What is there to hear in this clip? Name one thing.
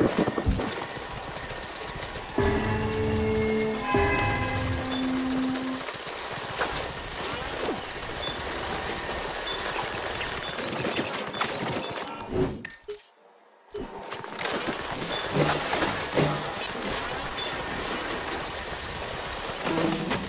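Footsteps crunch steadily over rocky gravel ground.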